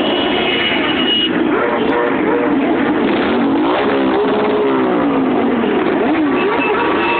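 Motorcycle engines rumble and roar loudly as they ride past one after another.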